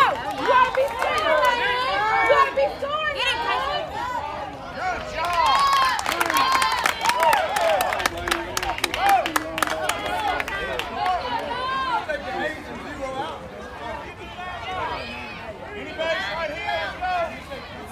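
Young children shout and cheer nearby outdoors.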